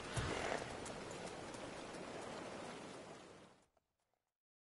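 Horses' hooves clop slowly on cobblestones.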